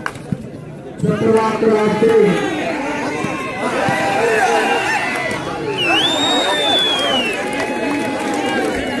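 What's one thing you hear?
A crowd cheers loudly in the distance.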